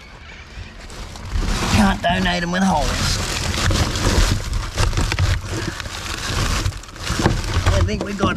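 Gloved hands rustle and crumple paper and plastic rubbish up close.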